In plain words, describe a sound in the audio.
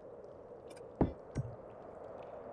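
A heavy wooden table thuds down into place.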